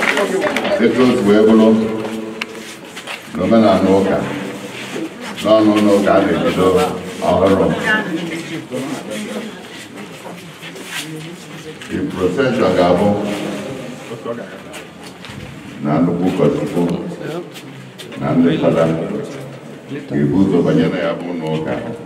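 A man speaks through a microphone and loudspeaker in measured phrases.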